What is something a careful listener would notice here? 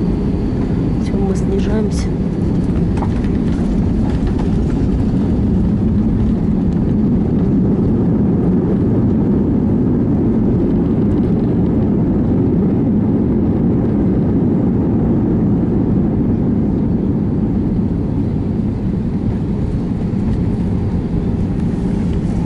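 The plane's wheels rumble over the runway.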